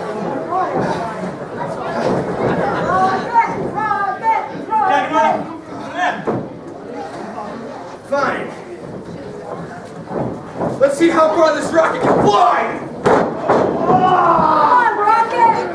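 Wrestlers thud onto a ring mat.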